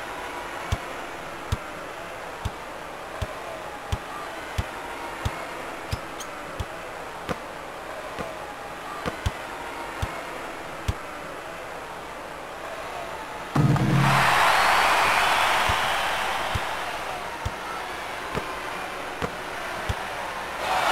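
A basketball bounces steadily on a hard court.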